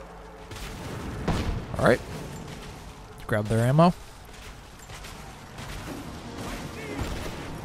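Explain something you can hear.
Footsteps crunch over snow and rubble.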